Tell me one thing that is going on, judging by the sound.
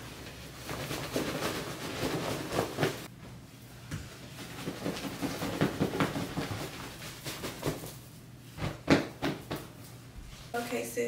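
Fabric rustles and flaps as bedding is handled.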